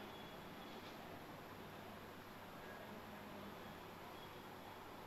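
A marker squeaks faintly as it writes on a whiteboard.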